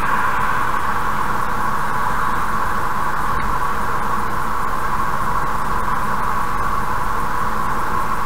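A car drives steadily along a highway with a constant rumble of tyres on the road.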